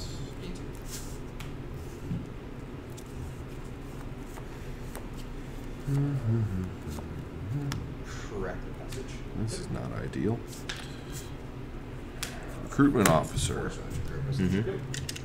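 Playing cards tap and slide softly on a table mat.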